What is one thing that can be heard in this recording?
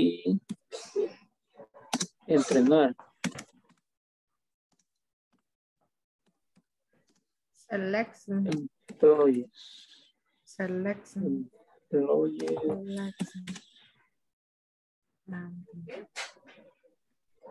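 A woman speaks with animation over an online call, in bursts with pauses.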